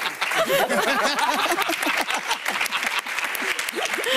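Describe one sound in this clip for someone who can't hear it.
A group of people cheer and clap.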